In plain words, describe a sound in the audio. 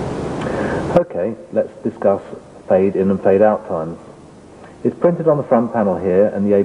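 A middle-aged man speaks calmly, explaining.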